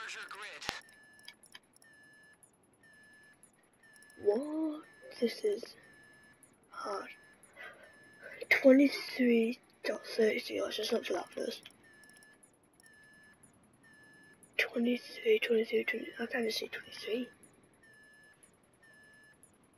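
A countdown timer beeps steadily about once a second.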